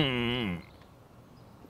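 A man makes a drawn-out exclaiming sound.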